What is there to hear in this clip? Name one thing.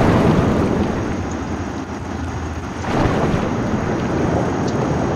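Water swirls and rushes as a figure swims underwater.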